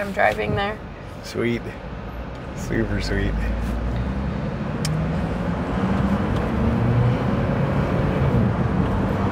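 A car engine hums with steady road noise while driving.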